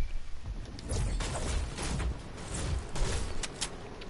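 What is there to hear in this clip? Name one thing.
A pickaxe strikes wood with heavy thuds.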